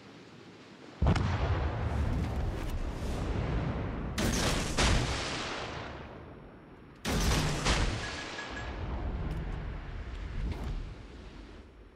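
Heavy naval guns fire in loud booming salvos.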